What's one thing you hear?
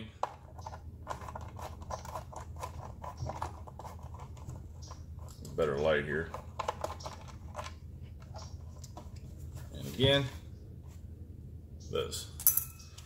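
Small plastic parts click and tap as a man handles them.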